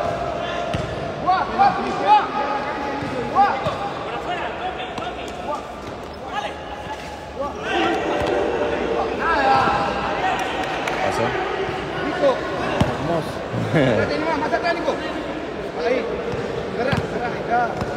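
Sneakers squeak on the floor.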